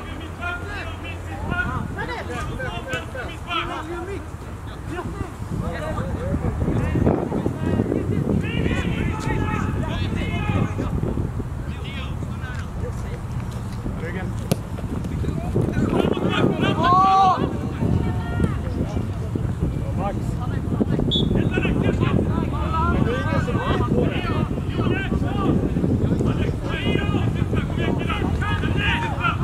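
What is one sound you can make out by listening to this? Adult spectators talk and call out nearby, outdoors.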